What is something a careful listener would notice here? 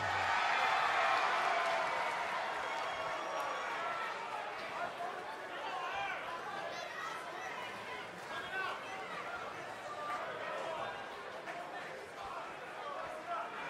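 A large crowd cheers loudly in a big echoing arena.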